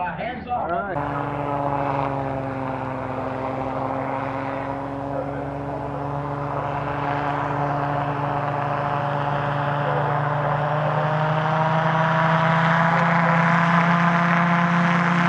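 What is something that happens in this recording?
A small propeller engine drones steadily and grows louder as it approaches.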